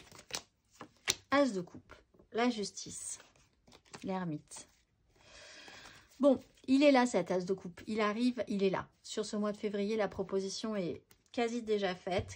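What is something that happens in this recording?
Playing cards rustle and slap softly as hands shuffle them.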